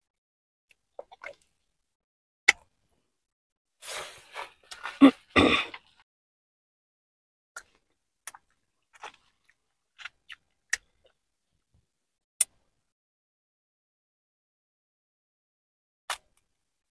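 Crab shell cracks and crunches close up.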